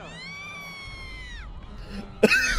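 A cartoon creature screams in a high, long wail.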